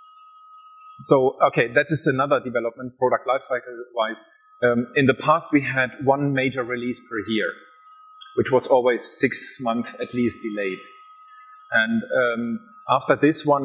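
A man speaks through a microphone, explaining with animation.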